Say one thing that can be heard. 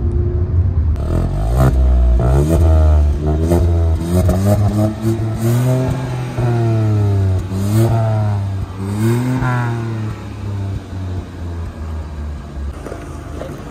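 A car exhaust roars as the engine revs up and down repeatedly.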